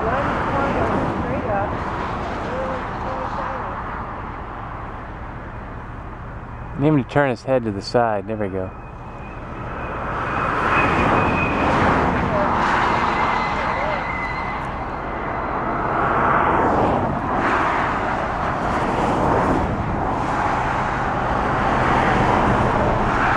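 Wind blows steadily outdoors, rising and falling in gusts.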